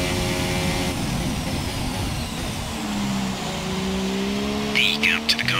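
A racing car engine drops in pitch as the car brakes hard, then revs up again.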